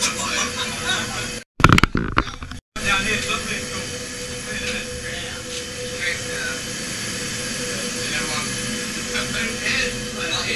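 Several men and women chat and laugh.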